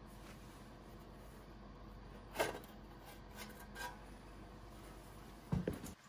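A metal engine cover rattles and clanks as it is pulled off.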